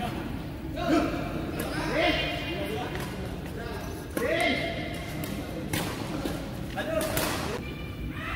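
Men call out and laugh during play.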